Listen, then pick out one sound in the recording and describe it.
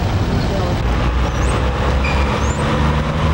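A semi truck's engine rumbles on the street.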